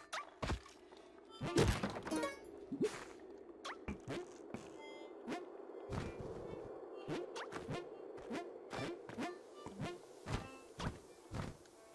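Short video game sound effects pop and thud again and again.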